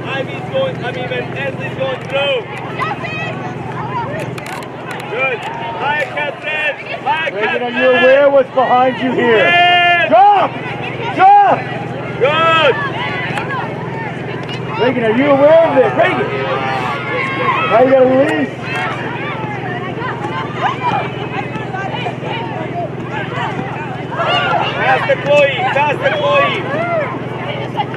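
Spectators close by call out and cheer loudly.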